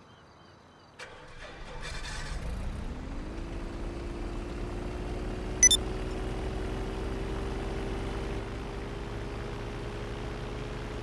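A small propeller plane engine starts and revs up to a steady drone.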